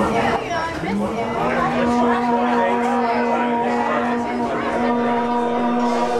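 A keyboard plays steady sustained chords.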